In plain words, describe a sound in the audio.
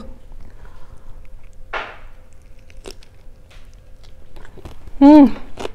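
A young woman chews food with soft crunches.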